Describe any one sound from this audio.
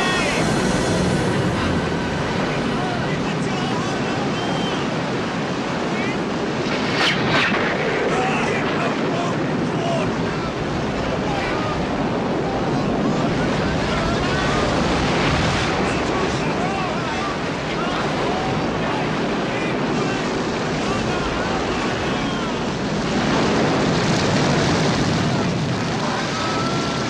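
Waves crash and roar against a wooden boat.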